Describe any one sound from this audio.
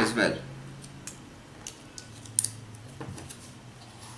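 Small wires tap and click as hands handle them.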